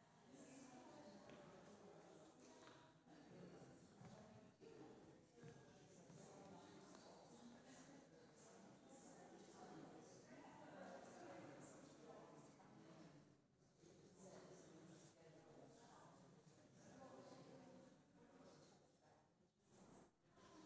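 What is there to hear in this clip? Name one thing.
Many men and women chat in a low murmur in a large echoing hall.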